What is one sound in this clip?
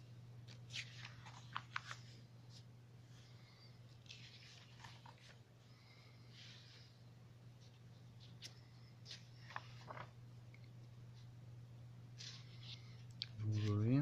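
Glossy paper pages rustle and flip as they are turned by hand.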